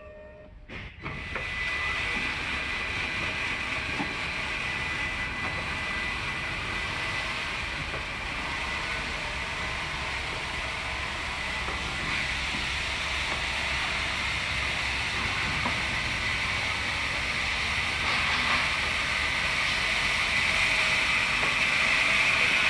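A floor scrubber machine hums and whirs steadily as it scrubs the floor, getting louder as it comes closer.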